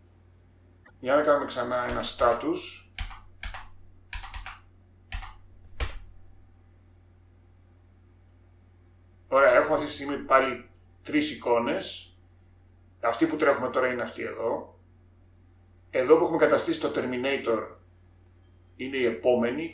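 A man speaks calmly and explains into a close microphone.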